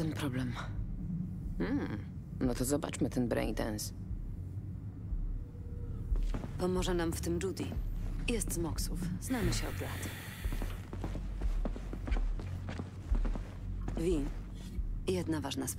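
A woman speaks calmly through a loudspeaker.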